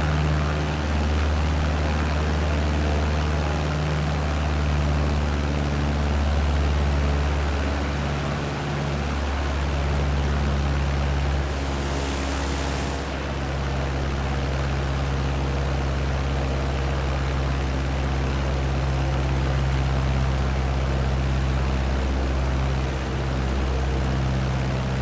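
A small propeller plane's engine drones steadily and loudly.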